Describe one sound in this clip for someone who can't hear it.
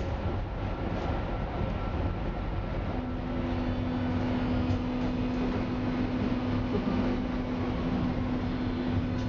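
A train rumbles and rattles steadily along the track.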